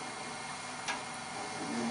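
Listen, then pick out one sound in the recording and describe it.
A metal tool rest clicks into place.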